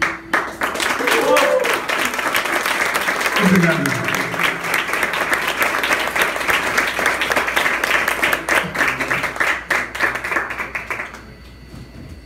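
An audience claps and cheers loudly in an echoing hall.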